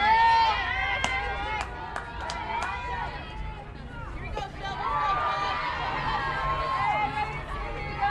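Young women chant and cheer loudly close by, outdoors.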